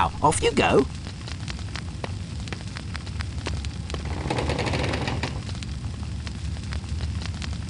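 Footsteps tap steadily on a hard stone floor in an echoing room.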